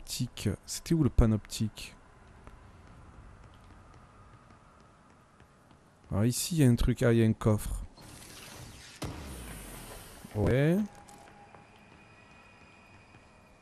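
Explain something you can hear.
Footsteps run across a hard floor and up stairs.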